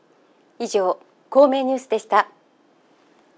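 A woman speaks clearly and calmly into a microphone.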